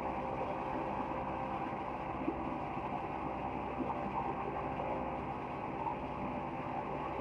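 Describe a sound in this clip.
A woodworking machine hums and rumbles steadily.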